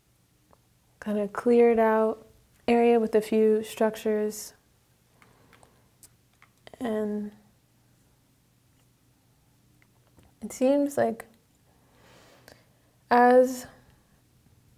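A young woman speaks calmly and clearly into a close microphone, with pauses.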